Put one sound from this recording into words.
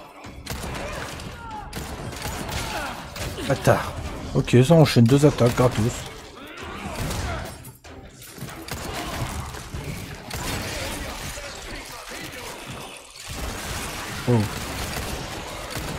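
Gunshots bang out in quick bursts.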